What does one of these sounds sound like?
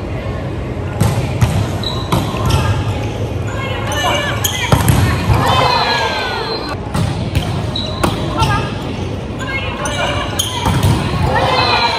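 A volleyball is struck with sharp slaps in an echoing hall.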